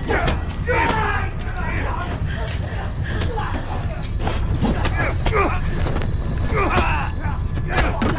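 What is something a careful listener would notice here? A young woman screams in fright.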